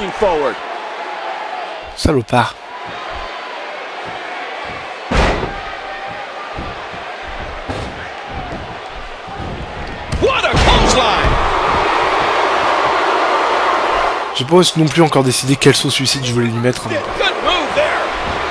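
A large crowd cheers and murmurs throughout, swelling louder partway through.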